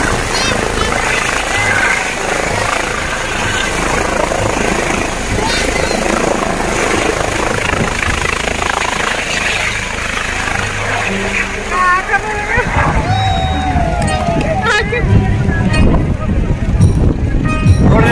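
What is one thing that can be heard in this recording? A crowd of people chatters and shouts with excitement outdoors.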